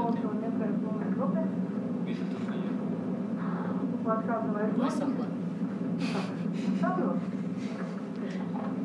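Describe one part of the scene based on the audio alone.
A woman speaks calmly, heard through loudspeakers in a room.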